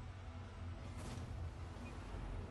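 A goal explosion bursts loudly.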